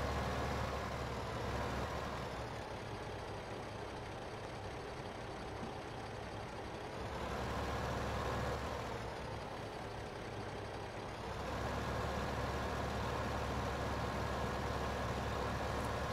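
A tractor engine hums steadily, rising and falling as it drives.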